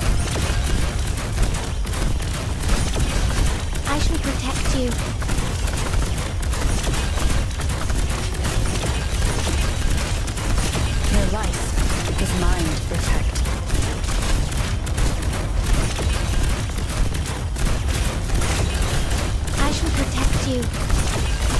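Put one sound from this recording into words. Game battle effects clash and burst with slashes and blasts.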